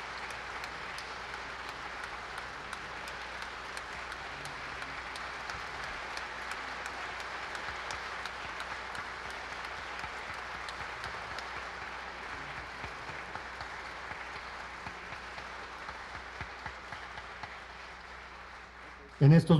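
A crowd applauds steadily.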